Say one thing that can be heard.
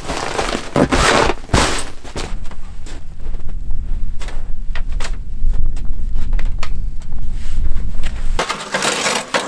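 Wind rumbles and blows outdoors.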